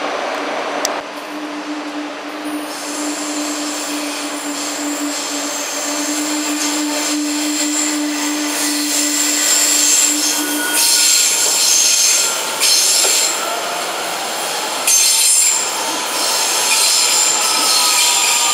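An electric train rolls by on the tracks with a steady hum.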